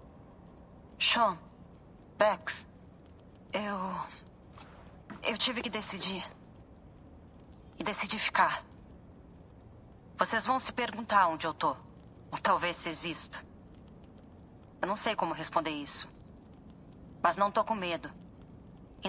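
A young man speaks close to a microphone in short bursts.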